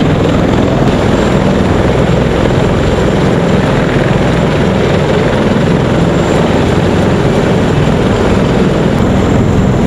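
A helicopter engine hums steadily nearby.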